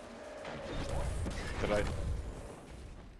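A heavy blast booms and crackles.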